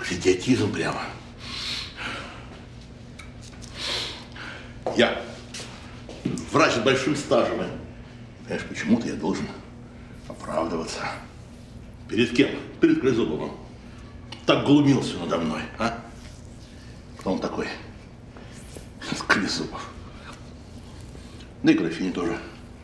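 A middle-aged man speaks nearby, agitated and complaining.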